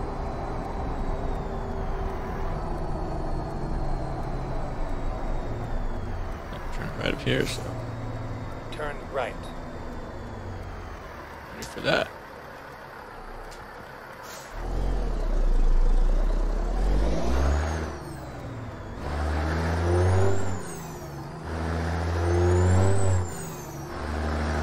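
A heavy truck engine rumbles steadily while driving.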